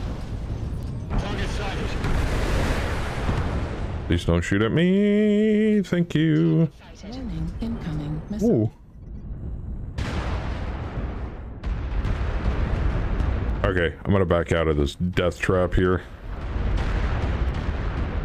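Weapons fire with loud blasts and explosions.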